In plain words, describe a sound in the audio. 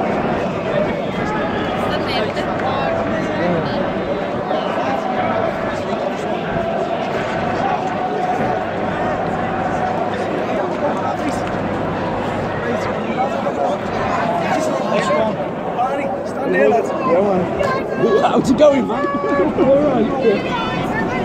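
A large crowd of football fans sings and chants outdoors.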